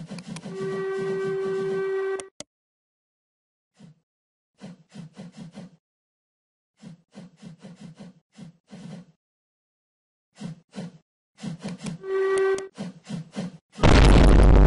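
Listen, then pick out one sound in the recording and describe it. A steam locomotive chuffs in a quick, uneven rhythm.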